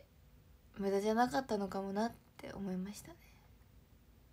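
A young woman speaks briefly and calmly, close to the microphone.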